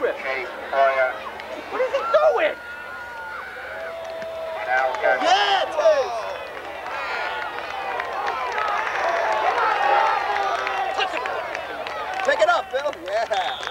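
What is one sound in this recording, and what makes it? A crowd of spectators cheers and shouts outdoors, swelling as the play goes on.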